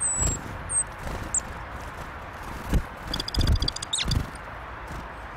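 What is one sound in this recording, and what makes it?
Small birds chirp in short high calls.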